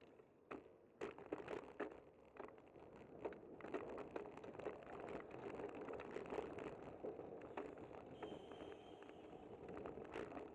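Wind buffets the microphone while riding outdoors.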